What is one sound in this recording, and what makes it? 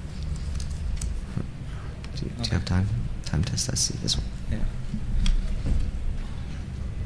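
A young man speaks into a microphone in a large hall.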